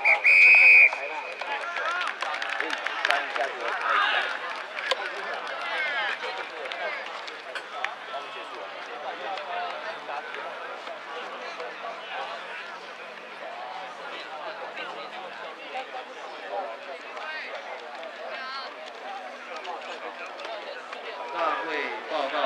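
A crowd of spectators chatters and cheers outdoors at a distance.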